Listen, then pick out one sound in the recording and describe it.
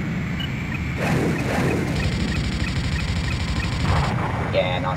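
Cannon fire rattles in rapid bursts.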